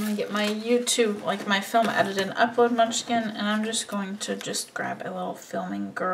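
A sheet of stickers crinkles as it is handled and peeled.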